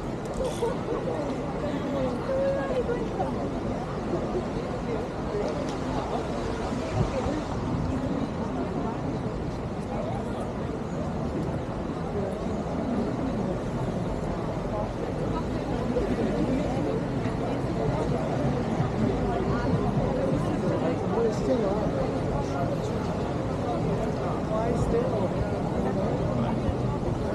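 A crowd of people talks and murmurs outdoors.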